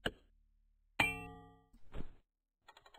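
A metal axe falls and clangs on a hard floor, ringing.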